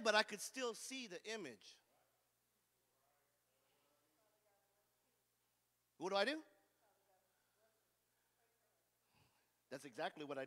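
A man preaches with animation through a microphone and loudspeakers in a large echoing hall.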